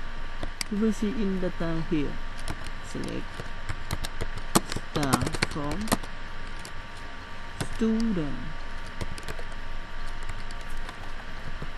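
Keyboard keys click in short bursts of typing.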